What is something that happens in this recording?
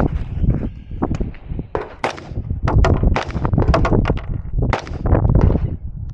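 Gunshots crack sharply outdoors, one after another.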